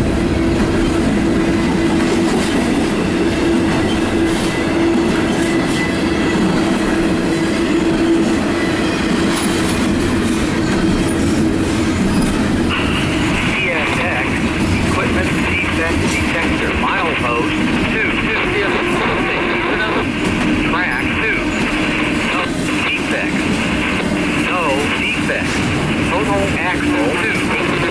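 A long freight train rumbles past close by, wheels clattering on the rails.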